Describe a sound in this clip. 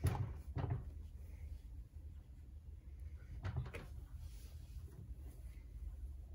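Water sloshes and splashes inside a turning washing machine drum.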